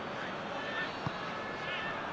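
A football is struck with a sharp thud.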